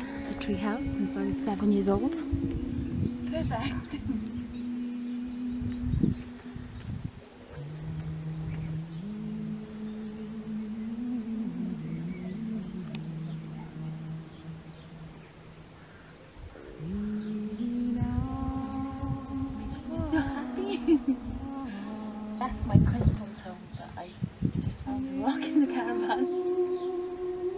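A young woman speaks calmly and warmly, close by.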